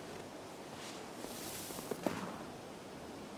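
A snowball whooshes through the air.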